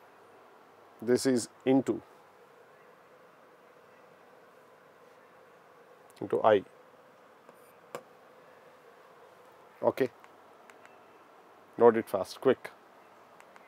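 A man speaks calmly into a close microphone in short bursts.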